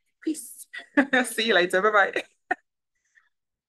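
A young woman laughs brightly into a microphone.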